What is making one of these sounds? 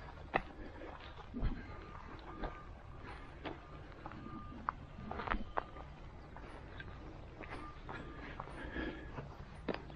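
Footsteps crunch on a gravel track at a steady pace.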